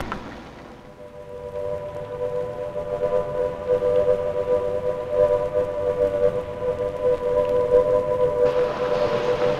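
A large clock bell chimes with long ringing tones.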